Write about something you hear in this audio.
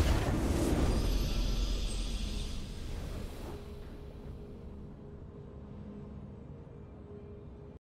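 A video game's victory fanfare swells and fades away.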